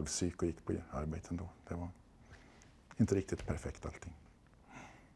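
A middle-aged man speaks calmly and close by, in short bursts with pauses.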